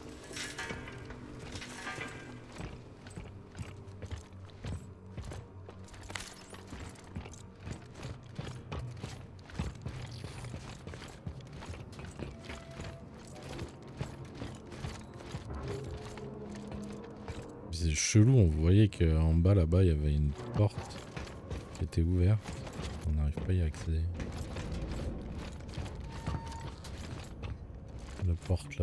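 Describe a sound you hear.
Heavy boots step steadily on metal flooring.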